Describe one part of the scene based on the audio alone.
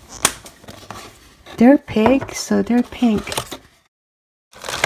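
Plastic tubs knock and click as hands handle them.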